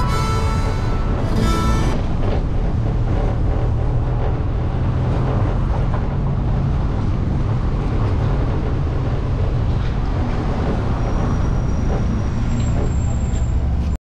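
Tyres roll over the road.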